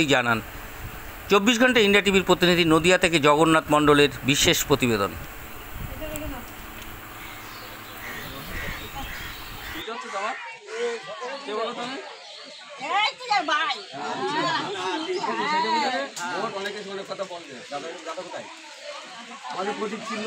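Women talk together in a small crowd.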